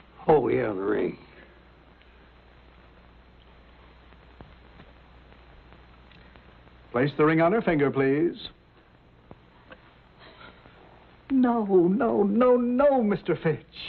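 Elderly men talk calmly, close by.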